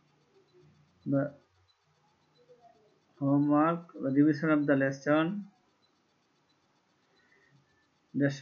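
A man speaks calmly into a nearby microphone, in short bursts with pauses.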